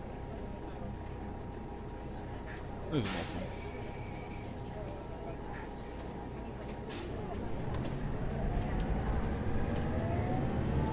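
A bus engine hums steadily and grows louder as the bus speeds up.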